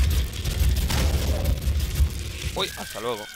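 A heavy gun fires with deep, rumbling blasts.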